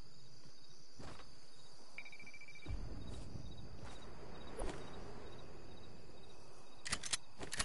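Footsteps thud on a tiled roof.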